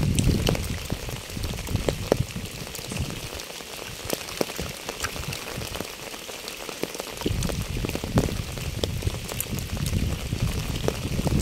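Raindrops patter steadily on wet ground and leaves outdoors.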